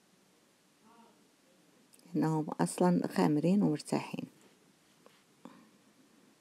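A soft lump of dough is set down on a rubbery mat with a quiet pat.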